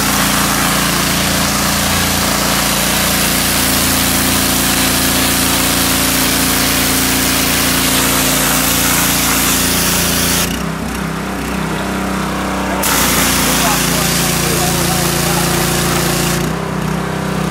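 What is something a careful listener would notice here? A pressure washer blasts water with a loud, steady hiss.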